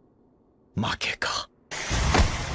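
A man speaks weakly and quietly.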